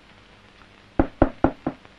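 A man knocks on a door several times.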